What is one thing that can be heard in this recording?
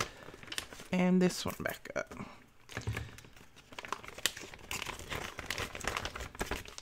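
Thin plastic sheets crinkle and rustle as they are handled close by.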